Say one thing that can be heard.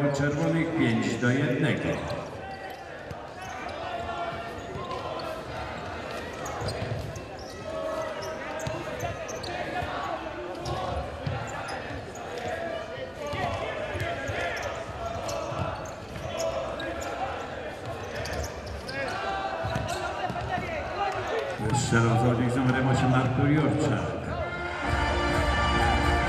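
A crowd cheers and chants loudly.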